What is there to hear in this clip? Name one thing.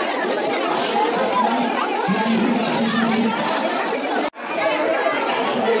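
A crowd of men and women chatter loudly all around, close by.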